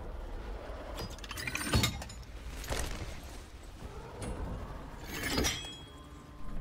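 Heavy metal parts clank and whir.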